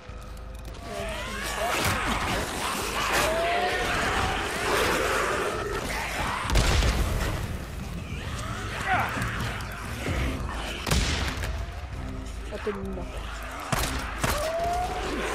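A crowd of zombies snarls and screeches.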